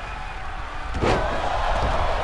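A body slams hard onto a wrestling mat.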